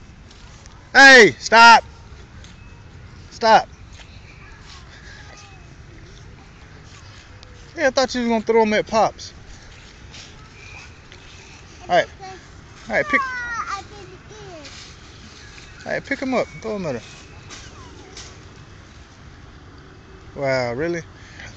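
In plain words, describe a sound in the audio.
A young child calls out and squeals in high, excited bursts close by.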